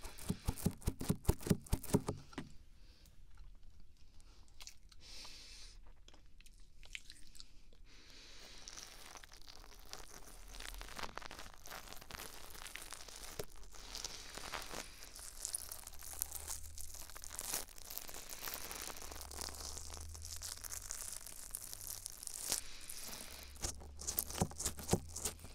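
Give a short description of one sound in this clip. Fingers tap and scratch on an ear-shaped microphone very close up.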